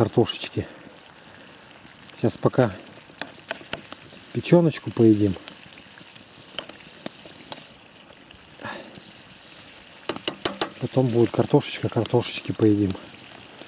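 A metal spoon scrapes and clinks against a frying pan.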